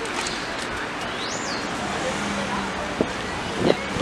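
Traffic rumbles along a busy city street outdoors.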